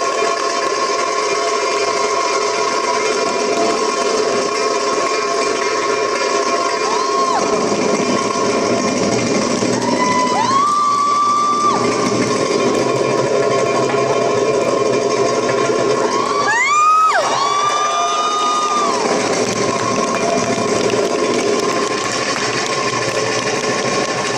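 A hand drum beats a quick rhythm.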